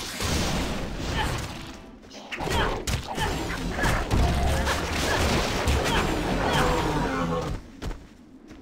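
Blows land and weapons clash in a loud, hectic fight.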